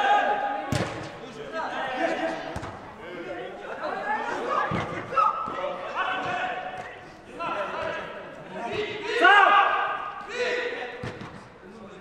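A football is kicked with sharp thuds.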